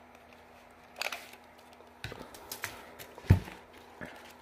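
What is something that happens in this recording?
A metal tape measure clicks and taps against a hard object.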